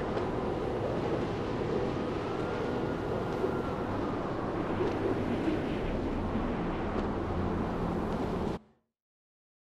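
Wind rushes loudly and steadily past.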